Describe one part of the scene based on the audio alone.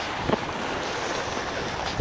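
Waves splash against rocks close by.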